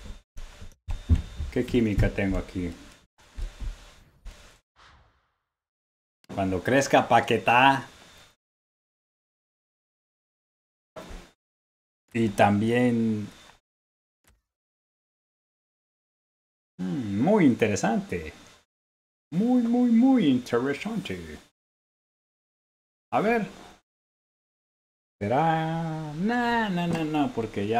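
A man talks with animation into a close microphone, in bursts with pauses.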